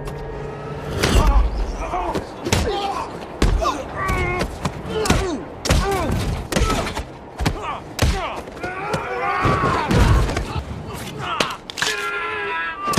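Punches land with heavy thuds.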